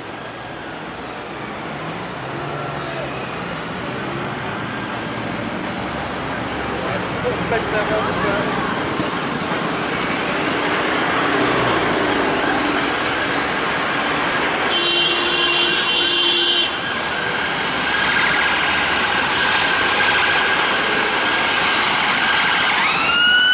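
Road traffic hums.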